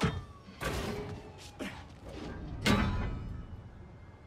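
A heavy metal lid scrapes and clanks down onto stone.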